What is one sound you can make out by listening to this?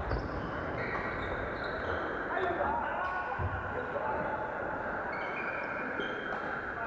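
Shuttlecocks are hit with rackets in a large echoing hall.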